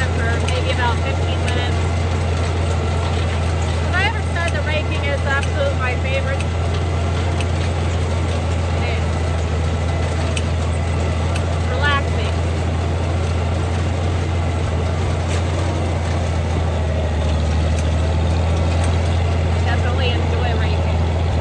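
A woman talks casually into a close microphone over the engine.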